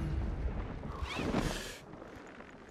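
A parachute snaps open with a loud whoosh.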